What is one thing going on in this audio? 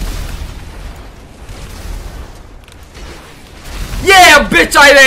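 Gunfire and explosions rumble from a video game.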